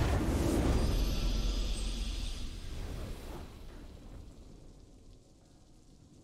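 A triumphant game fanfare plays and fades out.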